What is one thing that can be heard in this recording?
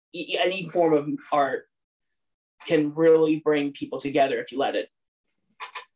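A young man speaks calmly and with animation over an online call.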